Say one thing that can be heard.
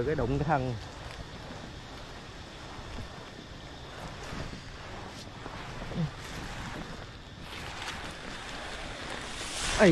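Palm fronds rustle and scrape as they are pushed aside.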